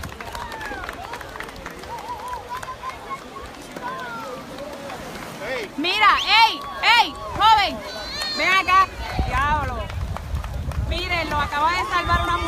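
Small waves lap and splash gently.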